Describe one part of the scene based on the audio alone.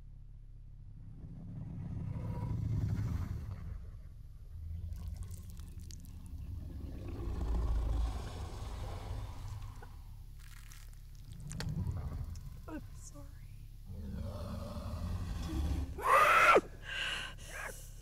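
A young woman sobs and whimpers close by.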